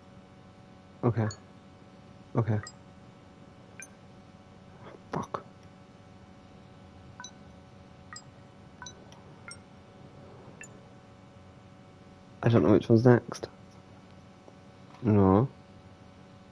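A keypad gives short electronic tones.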